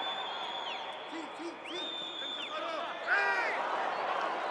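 A young man shouts loudly across an open stadium.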